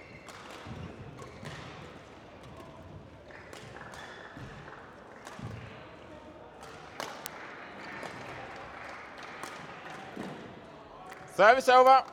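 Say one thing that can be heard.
Rackets strike a shuttlecock back and forth in an echoing hall.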